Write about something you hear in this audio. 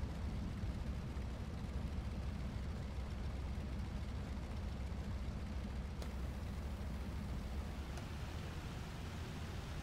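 A propeller engine drones loudly and steadily.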